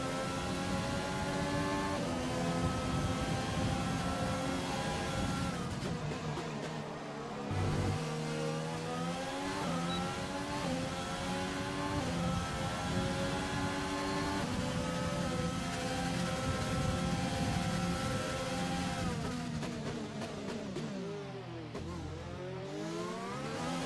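A racing car engine screams at high revs, dropping in pitch as it brakes and climbing again as it speeds up.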